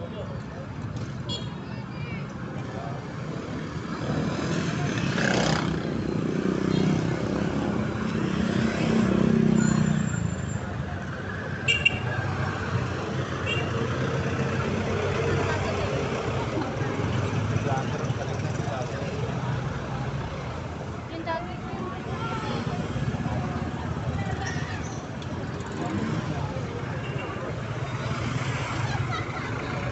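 Motorbike engines hum and pass by on a street.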